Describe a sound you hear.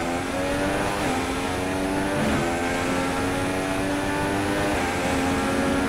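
A Formula One car engine screams at full throttle, shifting up through the gears.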